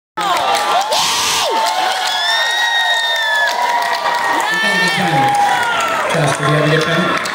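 A rock band plays loudly with distorted electric guitars in a large echoing hall.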